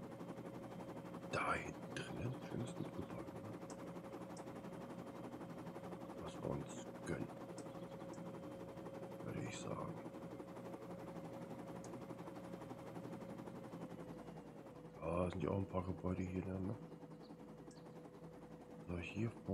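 A helicopter's rotor drones steadily overhead.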